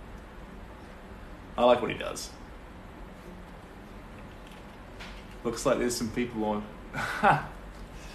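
A young man laughs.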